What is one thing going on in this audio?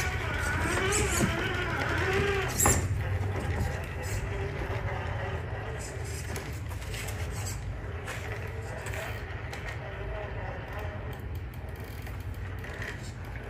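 Plastic tyres scrape and knock over rocks.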